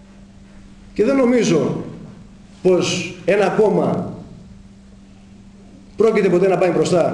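A middle-aged man speaks calmly into microphones close by, in short bursts with pauses.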